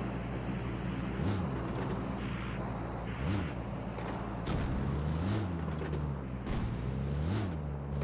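A car engine hums steadily as the vehicle drives along.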